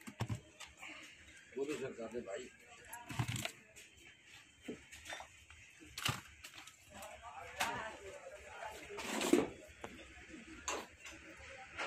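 Small cardboard boxes are set down and handled with soft knocks.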